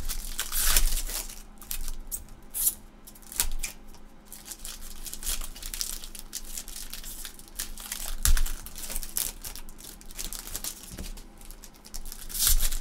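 Plastic card sleeves and wrappers crinkle and rustle as they are handled.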